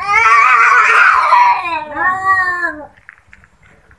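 A cat meows loudly and drawn out, close by.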